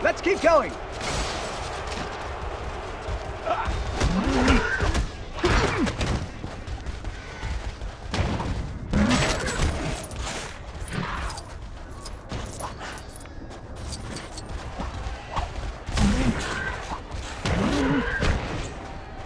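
Blasts and impacts crash in short bursts.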